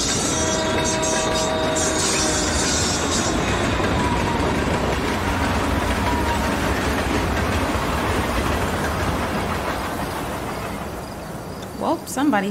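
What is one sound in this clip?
A train rumbles past loudly.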